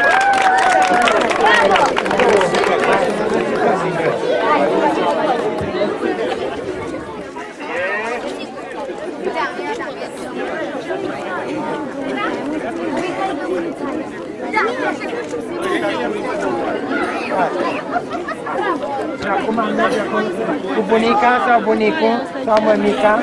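A crowd of children chatters and calls out outdoors.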